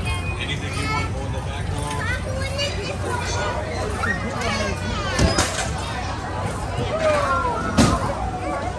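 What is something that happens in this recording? Young children chatter and squeal excitedly nearby.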